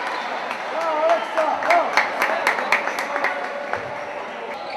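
A basketball bounces rapidly on a wooden floor in a large echoing hall.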